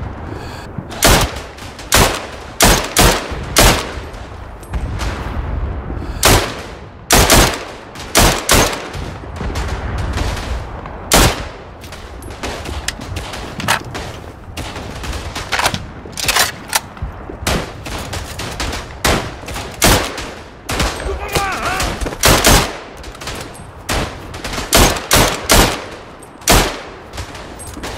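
A rifle fires loud single shots in quick bursts.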